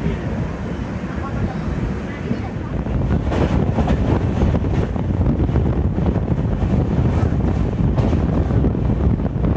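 A train rumbles along at speed, heard loud and close.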